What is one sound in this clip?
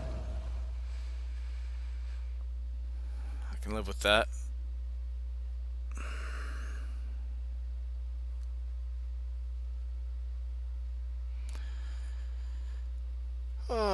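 A man speaks now and then through a close microphone.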